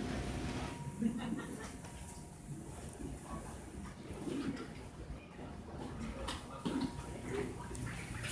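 Men murmur quietly at a distance in an echoing hallway.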